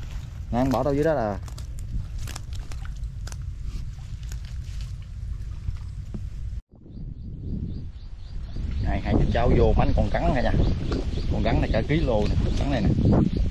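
Water splashes as a man wades and digs with his hands.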